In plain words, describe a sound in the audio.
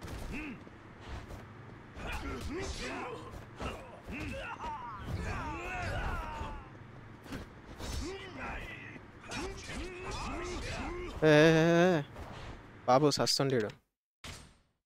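Men grunt and shout as they fight.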